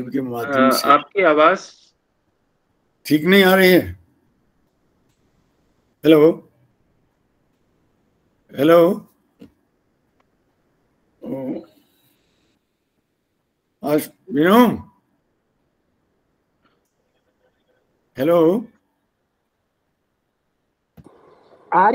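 An elderly man speaks slowly with long pauses, heard through an online call.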